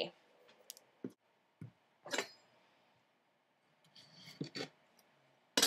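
Tomatoes thud softly onto a wooden cutting board.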